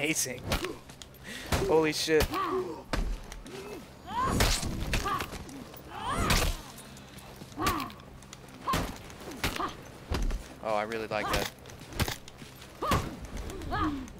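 Swords clash and strike sharply.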